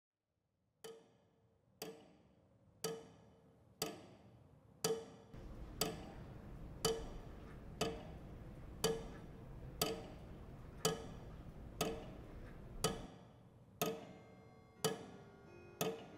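A clock ticks loudly and steadily, about once a second, each tick ringing briefly.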